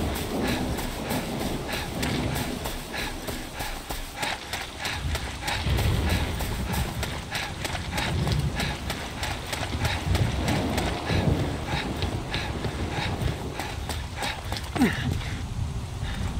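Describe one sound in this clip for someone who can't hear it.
Footsteps run quickly over gravel and wooden steps.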